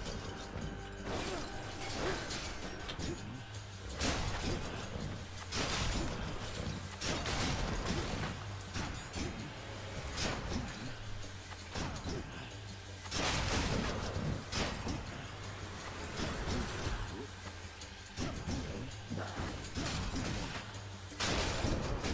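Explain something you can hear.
Sword swings whoosh and strike in quick bursts.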